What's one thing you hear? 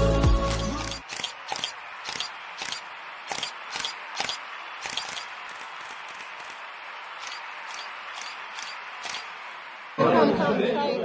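A crowd claps in a large room.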